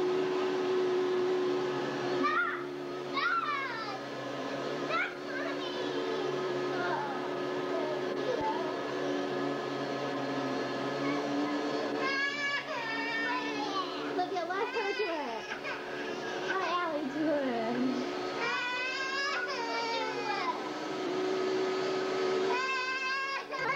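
A vacuum cleaner hums steadily nearby.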